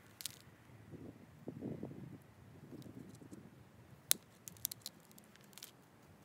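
A stone scrapes and clicks against a blade being sharpened.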